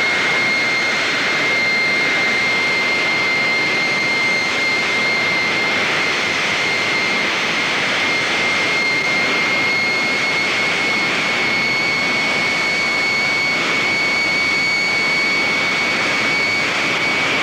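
A dragster engine rumbles loudly nearby.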